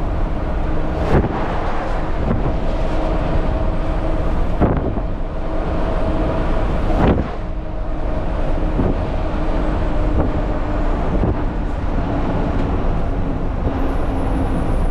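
A truck's diesel engine rumbles steadily while driving.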